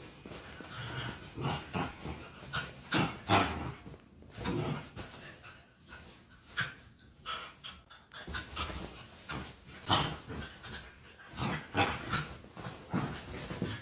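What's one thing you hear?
Two small dogs growl and bark playfully at each other.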